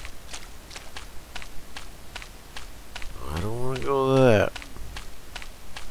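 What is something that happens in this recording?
Footsteps tread steadily on grass.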